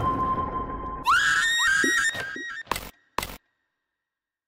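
Short electronic chimes ring out from a game menu.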